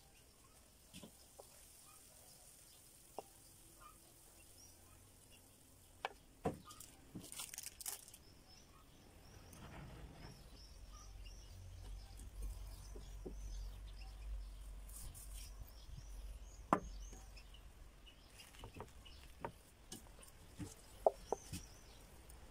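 Soft taps and knocks sound on a wooden board.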